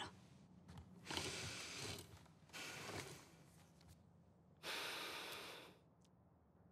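Cloth rustles and scrapes as hands tend to a wound.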